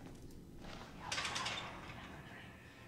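A metal gate rattles and creaks open.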